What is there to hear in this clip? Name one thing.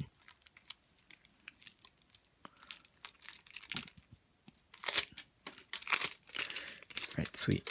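Playing cards rustle and slide against each other as they are shuffled by hand.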